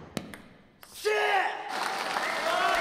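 A young man shouts loudly in a large echoing hall.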